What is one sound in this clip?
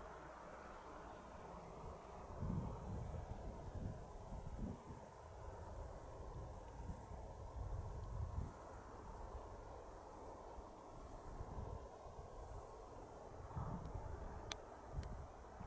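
Wind gusts buffet the microphone outdoors.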